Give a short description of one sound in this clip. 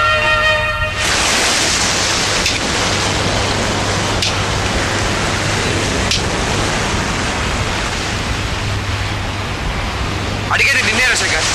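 Waves crash and roar against rocks.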